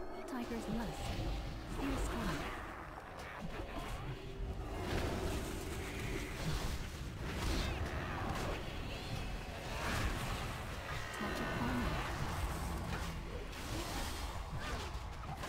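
Magic spells whoosh and chime in bursts.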